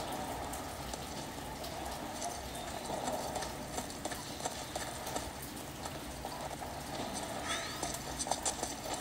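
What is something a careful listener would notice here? Game sound effects play from a handheld console's small speakers.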